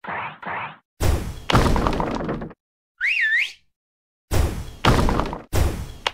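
Bubbles pop in quick bursts of bright game sound effects.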